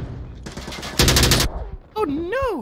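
A grenade bursts with a loud bang.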